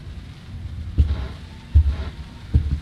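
Heavy footsteps thud slowly on a wooden floor.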